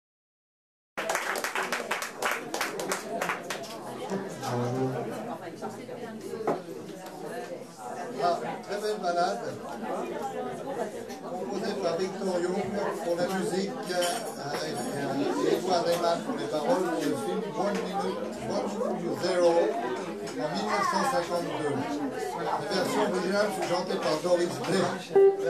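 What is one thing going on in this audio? An upright bass plays a walking line.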